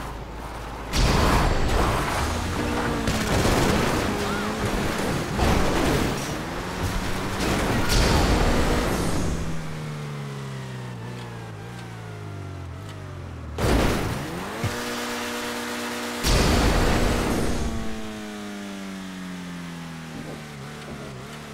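A car engine revs hard and its pitch rises and falls.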